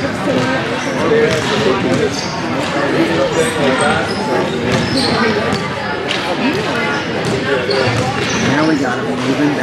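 Sticks clack against a ball and the floor.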